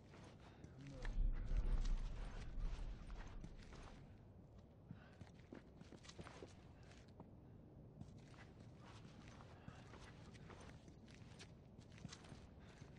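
Soft footsteps shuffle slowly across a hard floor.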